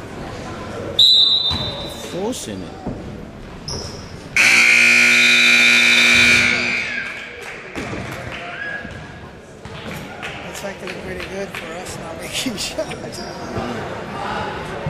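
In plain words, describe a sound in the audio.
Spectators talk and call out nearby.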